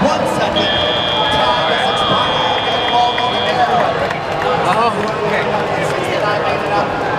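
A large crowd roars and chatters in a big echoing arena.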